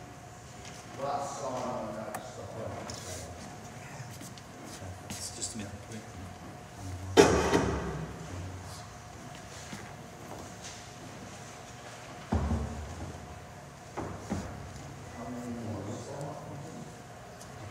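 A man speaks calmly on stage, heard from a distance.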